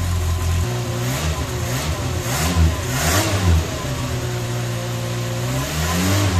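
A car engine idles close by, its pitch rising and falling.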